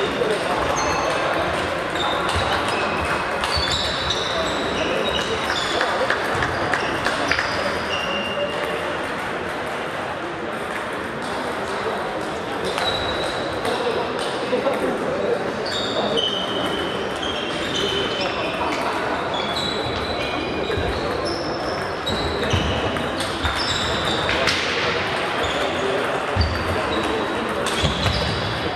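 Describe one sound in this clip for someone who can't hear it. A ping-pong ball clicks back and forth between paddles and a table in a large echoing hall.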